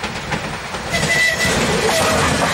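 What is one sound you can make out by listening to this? A train horn gives a short toot.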